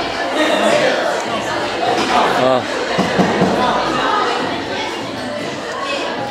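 A young man sips a drink through a straw.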